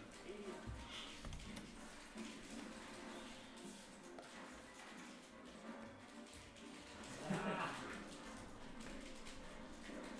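Several young men chat quietly in a room.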